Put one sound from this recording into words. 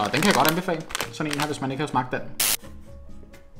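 A plastic packet crinkles in hands.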